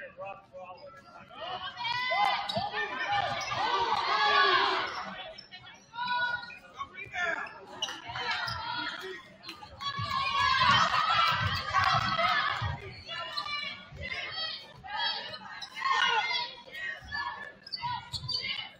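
A crowd in an echoing gym cheers and shouts.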